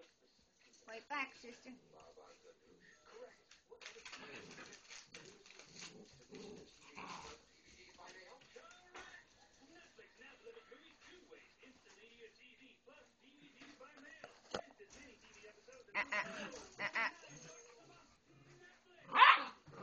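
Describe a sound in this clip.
Puppies yelp sharply.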